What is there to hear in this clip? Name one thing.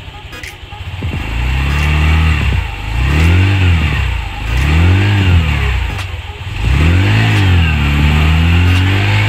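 A scooter engine revs up and down repeatedly, loud and close.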